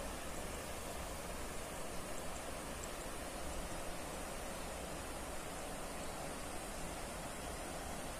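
A stream flows and gurgles steadily nearby.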